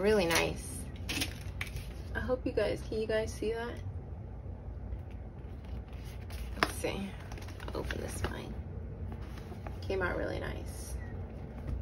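A vinyl cover creaks and taps as it is handled.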